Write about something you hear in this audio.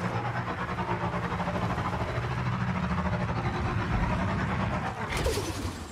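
A motorbike engine rumbles steadily.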